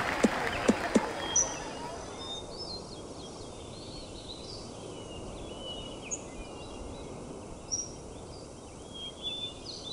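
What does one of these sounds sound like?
A golf ball bounces and rolls on grass.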